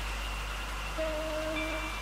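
A train horn sounds briefly.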